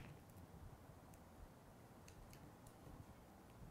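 Hands press adhesive dots onto paper with faint clicks.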